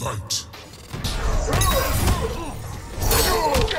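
An energy blast whooshes and crackles.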